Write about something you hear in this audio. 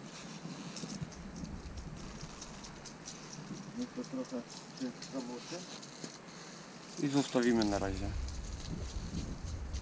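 Liquid splashes as it is poured onto paving stones.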